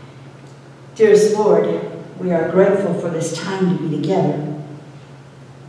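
An older woman speaks calmly through a microphone.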